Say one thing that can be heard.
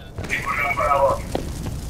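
A fire burns and crackles.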